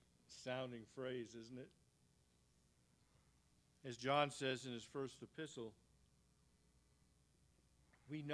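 A man speaks calmly into a microphone in a room.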